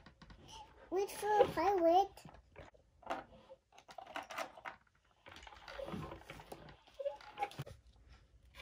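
A young child talks in a high, sing-song voice close by.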